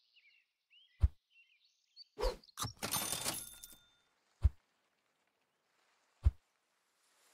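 Short game sound effects pop and chime now and then.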